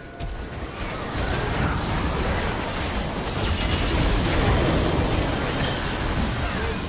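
Heavy game blasts and impacts boom repeatedly.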